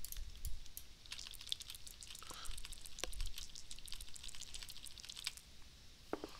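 A die rattles and clicks as it rolls.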